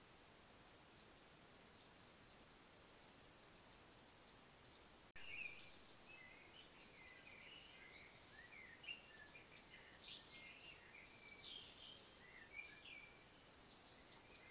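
A hedgehog chews and smacks noisily close by.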